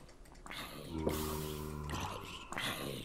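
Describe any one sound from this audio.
A zombie groans low and hoarsely.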